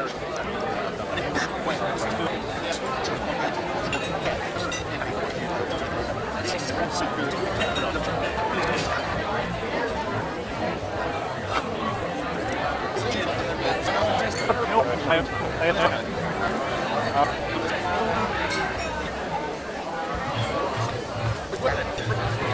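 A busy room hums with many people chattering indoors.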